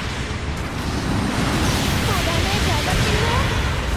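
Metal explodes with crackling sparks.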